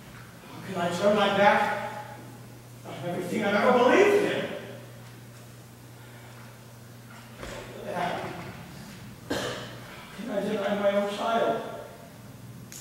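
A man speaks loudly from a stage, heard from a distance in a large echoing hall.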